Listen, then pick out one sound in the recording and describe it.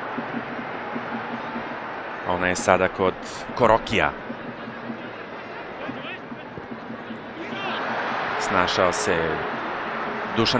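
A large stadium crowd murmurs and cheers steadily, swelling toward the end.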